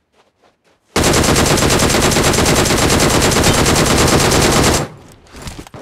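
A machine gun fires in a rapid automatic burst.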